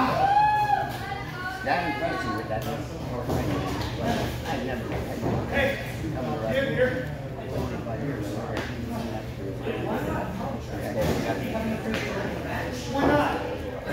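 Wrestlers thud onto a ring mat.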